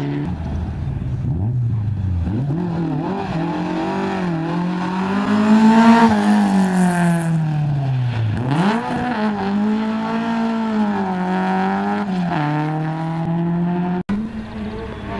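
A rally car engine roars and revs hard as the car speeds past close by.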